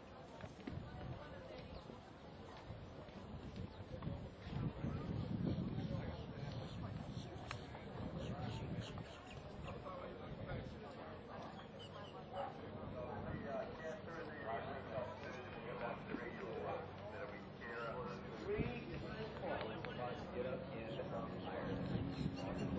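Horse hooves thud on soft ground at a canter.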